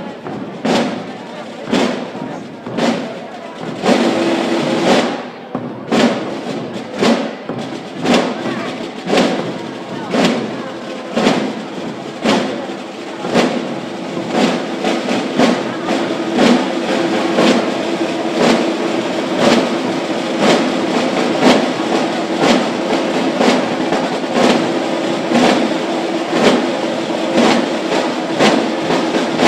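A crowd of men and women murmurs nearby.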